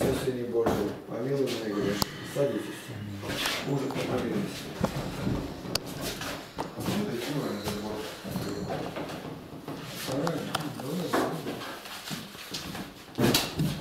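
A man speaks nearby in a calm, steady voice.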